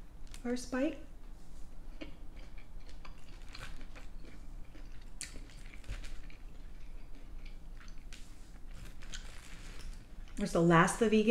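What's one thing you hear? A young woman chews food with soft wet sounds.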